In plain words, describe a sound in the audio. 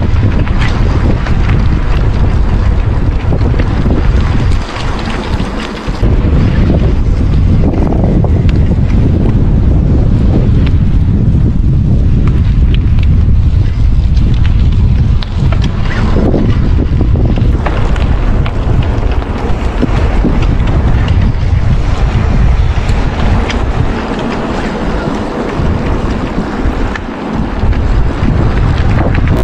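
Bicycle tyres crunch over a gravel track.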